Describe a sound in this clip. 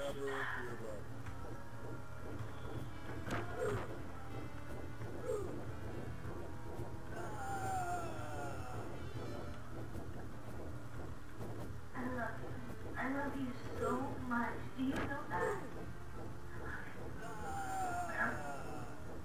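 Arcade game music plays steadily.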